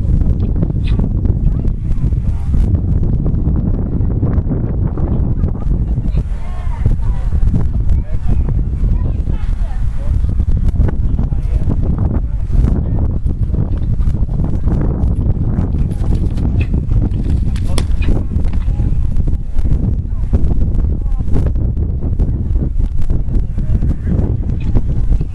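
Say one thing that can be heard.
Strong wind blusters across the microphone outdoors.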